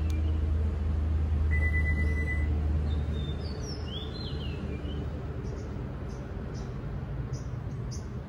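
A car's powered tailgate hums steadily as it closes slowly.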